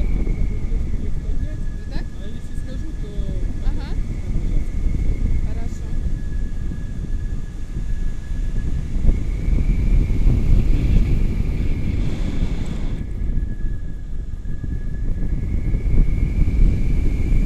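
Strong wind roars and buffets against a microphone.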